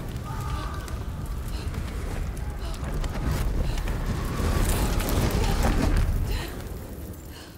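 Fire roars and crackles, swelling louder before dying down.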